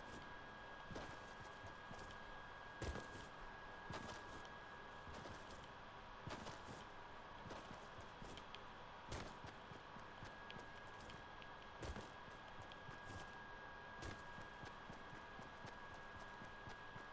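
Footsteps patter quickly over grass as a game character runs.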